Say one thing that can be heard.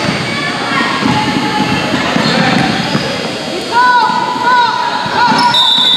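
Spectators chatter in an echoing gym.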